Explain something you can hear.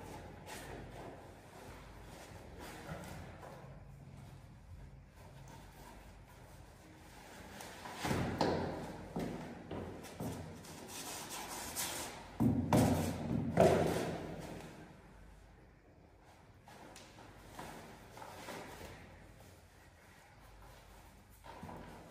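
Shoelaces rustle as they are tied.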